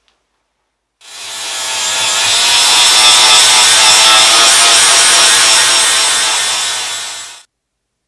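An angle grinder grinds metal with a loud, steady whine.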